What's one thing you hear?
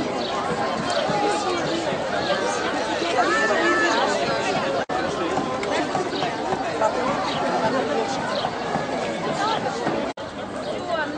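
A crowd of adults and children chatters and calls out all around outdoors.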